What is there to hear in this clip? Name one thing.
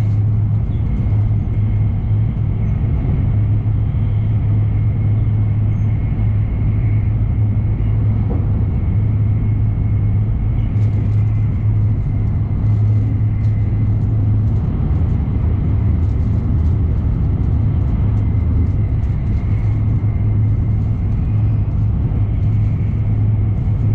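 Wheels click and rattle over the rails.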